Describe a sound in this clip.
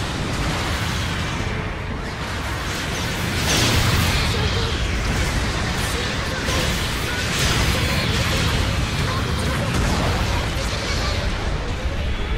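Beam weapons hiss and zap.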